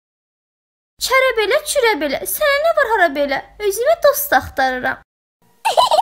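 A young woman speaks brightly and with animation.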